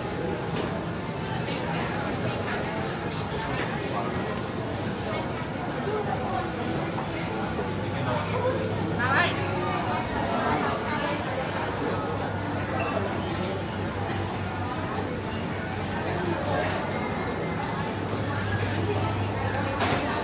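A crowd of shoppers chatters and murmurs all around in a large echoing hall.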